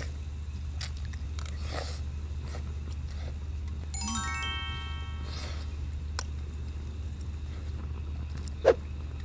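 A young woman chews and slurps food.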